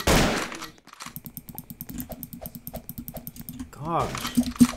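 Footsteps patter quickly and steadily on a hard floor.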